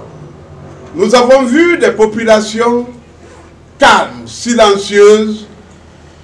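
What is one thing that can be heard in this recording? A middle-aged man speaks calmly into microphones up close.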